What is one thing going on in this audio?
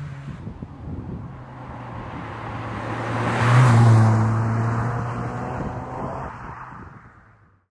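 A car approaches with its engine droning and passes close by.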